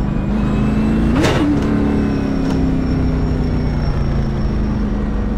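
A race car engine drones steadily from inside the cockpit.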